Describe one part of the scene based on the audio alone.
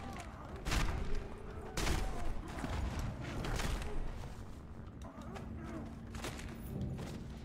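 Heavy punches and thuds land in a brawl.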